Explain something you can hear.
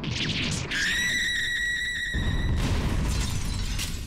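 A stone lid bursts apart with a loud crash.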